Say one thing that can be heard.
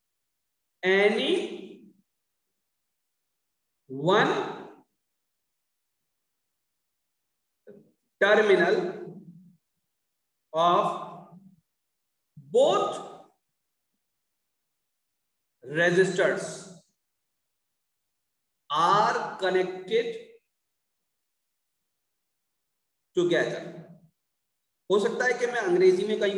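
A man speaks slowly and calmly into a microphone, in short phrases with pauses.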